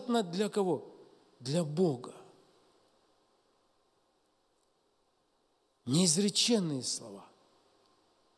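A middle-aged man speaks emphatically into a microphone, with long pauses.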